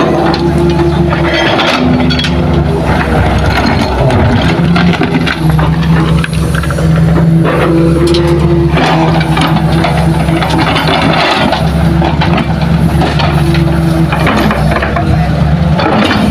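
A diesel excavator engine rumbles and drones steadily close by.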